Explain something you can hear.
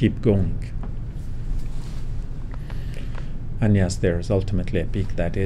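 A middle-aged man speaks calmly and slowly into a microphone.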